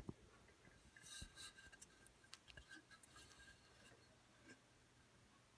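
A metal helmet is turned over in a hand, with light knocks and rustles.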